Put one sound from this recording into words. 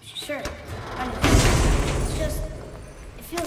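A heavy chest lid creaks open with a loud rumble.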